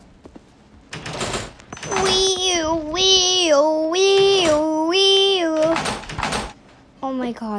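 A cheerful electronic chime tune plays.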